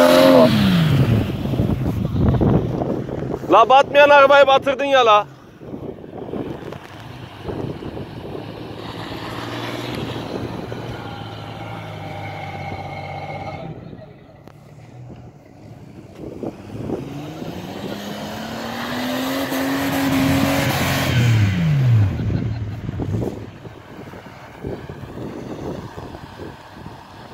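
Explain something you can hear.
An off-road vehicle's engine revs and roars.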